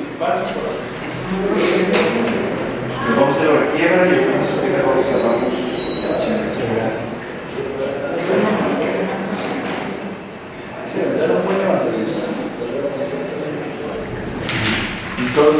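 A man speaks calmly at a steady pace, close by in a room.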